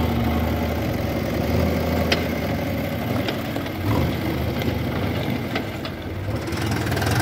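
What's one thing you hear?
A backhoe loader's diesel engine rumbles nearby.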